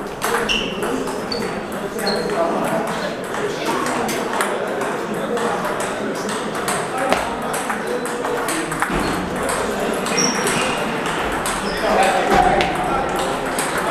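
Ping-pong balls click rapidly against paddles and tables in a large echoing hall.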